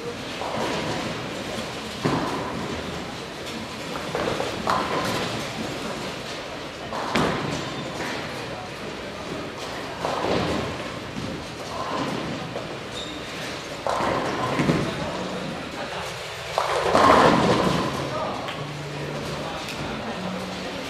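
Bowling balls roll down lanes and crash into pins, echoing in a large hall.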